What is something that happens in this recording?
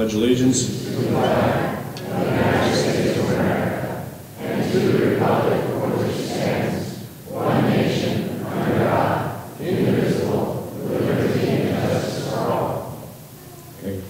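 A woman sings slowly and steadily in a large echoing hall.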